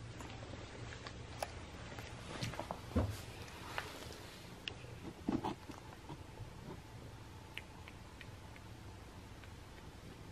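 A cat chews and smacks on food close by.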